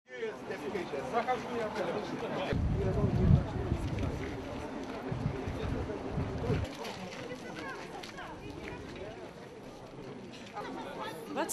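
A crowd of people talk and murmur outdoors.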